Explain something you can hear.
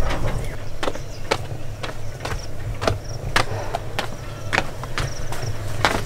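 Footsteps tread down stone steps outdoors.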